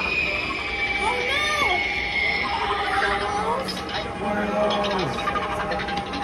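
A toy spider prop plays eerie electronic sound effects.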